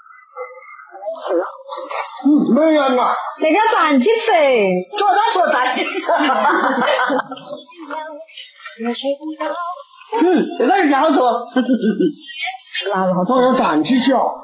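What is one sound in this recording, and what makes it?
A young woman talks cheerfully nearby.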